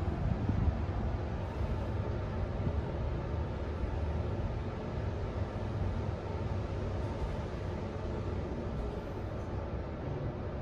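An elevator hums and rumbles steadily as it moves.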